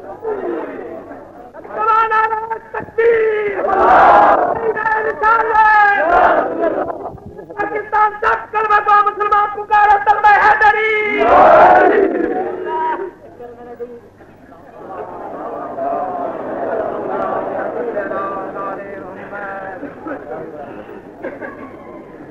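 An elderly man speaks forcefully into a microphone, with echo.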